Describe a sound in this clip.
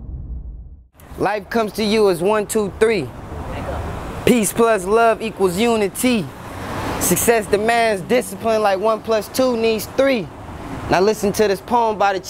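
A young man speaks calmly into a clip-on microphone, close by.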